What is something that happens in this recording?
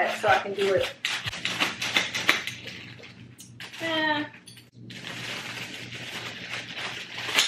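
Plastic wrapping crinkles and rustles in a young woman's hands.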